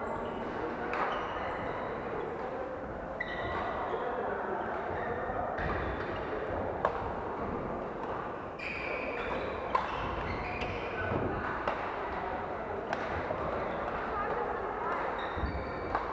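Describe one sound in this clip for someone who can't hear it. Shuttlecocks are struck with rackets in sharp pops.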